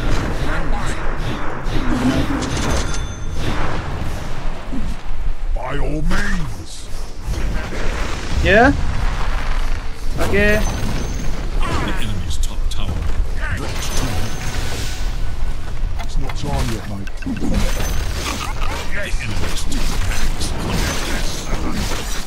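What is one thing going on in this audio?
Magic spells whoosh and blast in a busy fantasy battle.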